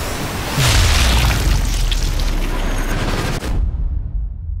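A bullet strikes with a loud, slowed-down booming impact that rumbles and fades.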